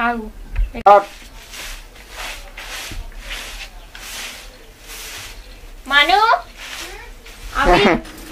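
A broom sweeps with rhythmic scratchy strokes.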